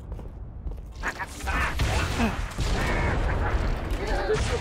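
A heavy gun fires a rapid burst.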